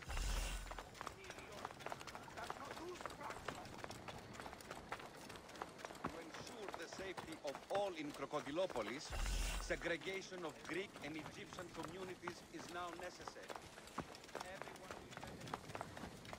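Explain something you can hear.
Quick footsteps run over stone paving.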